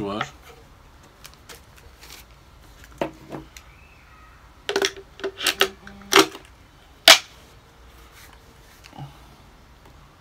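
Leather and metal parts knock and click as they are handled.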